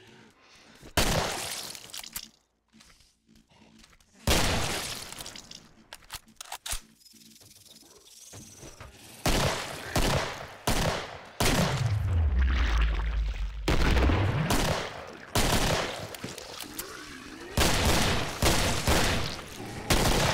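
Gunshots boom and echo down a corridor.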